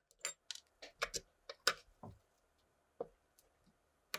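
Metal pliers click and grip against a guitar's metal jack.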